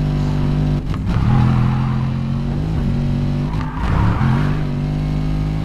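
Tyres screech as a car slides through a bend.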